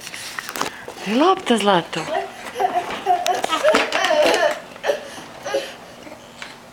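A young child babbles and squeals nearby.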